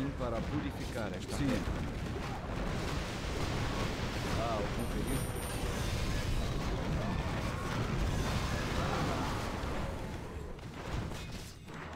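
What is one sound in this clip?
Spell effects and weapon clashes from a battle game crackle and thud.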